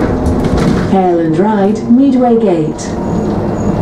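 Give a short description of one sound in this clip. A bus engine whines as the bus pulls away.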